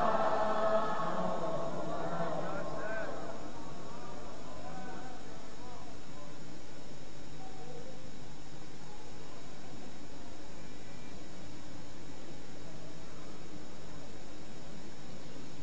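A man chants a Quranic recitation through a microphone.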